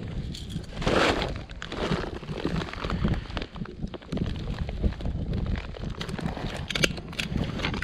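A plastic tarp crinkles and rustles as it is handled.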